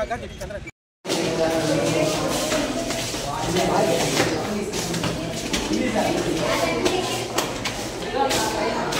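Children chatter and call out in an echoing indoor space.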